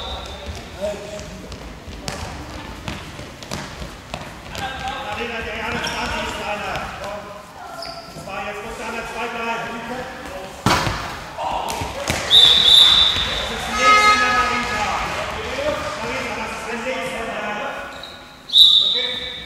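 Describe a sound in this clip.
A ball bounces on a hard floor in an echoing hall.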